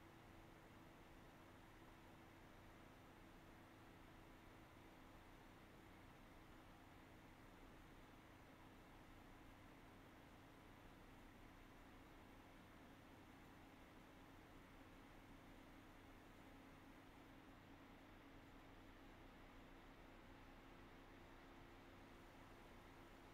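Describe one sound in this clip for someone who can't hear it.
A computer's cooling fans hum steadily close by.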